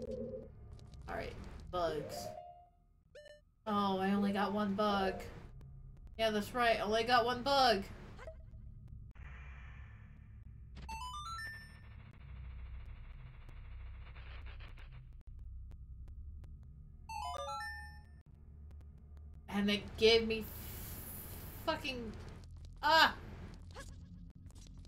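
A young woman talks with animation into a microphone.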